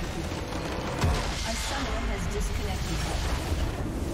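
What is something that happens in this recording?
A structure explodes with a deep boom.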